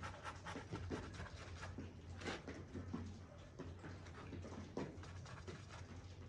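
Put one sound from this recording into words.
A paintbrush scratches and dabs on a canvas.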